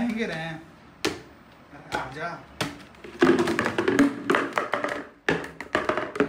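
Plastic pots knock and clatter together.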